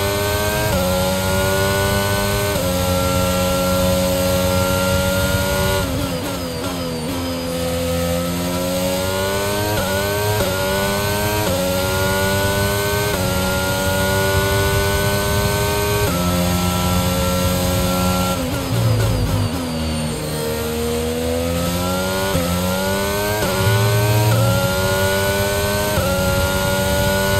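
A racing car engine screams at high revs, shifting up through the gears and dropping down when braking.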